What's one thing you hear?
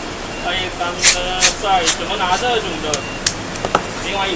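Adhesive tape rips off a roll.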